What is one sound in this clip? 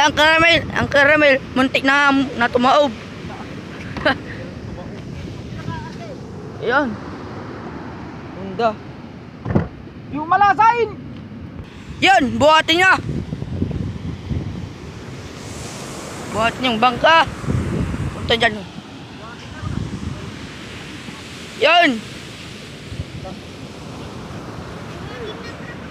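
Waves break on a shore in the background.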